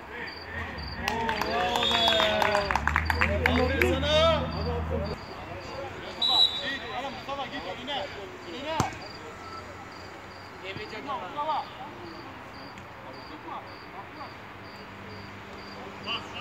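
Adult men shout to each other from a distance outdoors.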